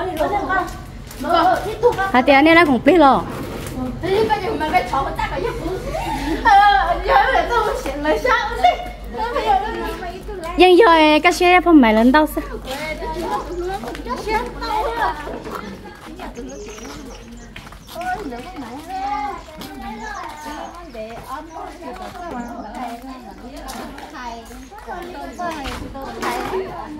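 Young women talk and laugh cheerfully nearby.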